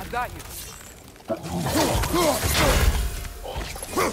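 Blows strike during a fight.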